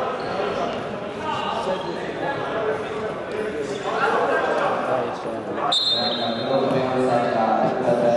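A ball is kicked with dull thumps.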